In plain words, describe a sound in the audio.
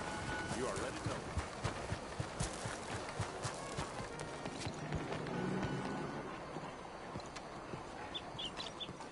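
Footsteps run on stone pavement.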